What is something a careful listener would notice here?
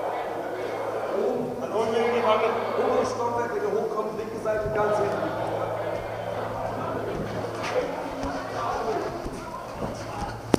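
Men talk and call out to each other nearby.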